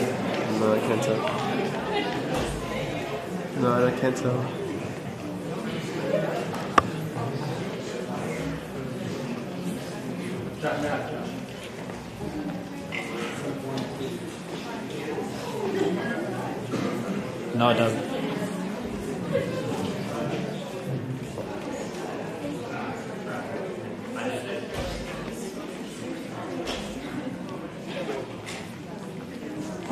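A crowd of people chatters throughout a large hall.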